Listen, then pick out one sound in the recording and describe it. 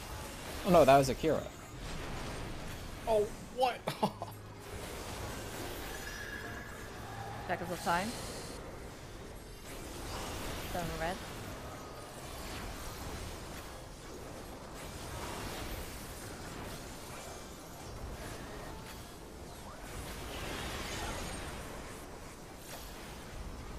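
Fantasy battle music and spell effects play steadily.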